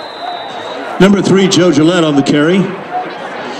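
Young men on the sideline shout and cheer loudly close by.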